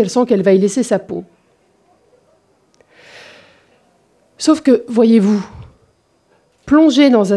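A woman speaks with animation into a microphone, in pauses.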